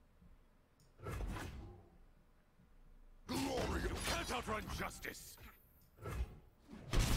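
Game sound effects whoosh and clash as cards are played.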